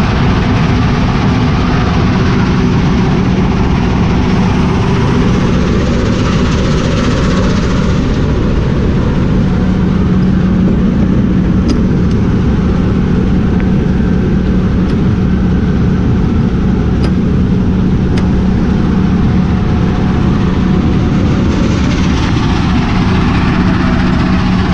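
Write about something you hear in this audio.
A mobile rock crusher runs with a steady diesel drone.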